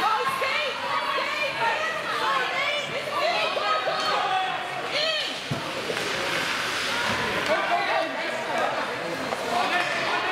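Spectators shout and cheer nearby in an echoing rink.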